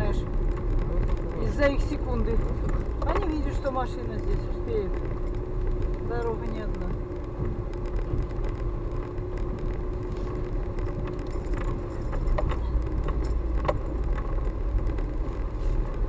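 Tyres crunch and rumble over icy, bumpy ground.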